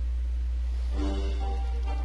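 Music starts playing softly.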